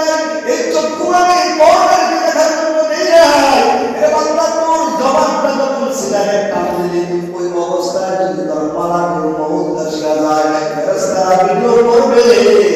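A man chants in a drawn-out, melodic voice through a microphone.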